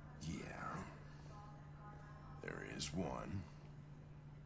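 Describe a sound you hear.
An elderly man speaks in a low, gruff voice.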